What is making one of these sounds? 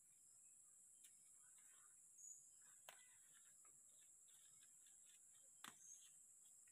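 Leaves rustle softly as a hand brushes through them.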